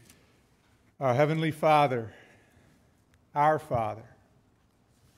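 A young man speaks calmly through a microphone, with long pauses.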